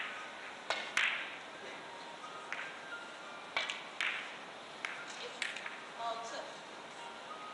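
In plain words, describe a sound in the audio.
Billiard balls click against each other and the cushions.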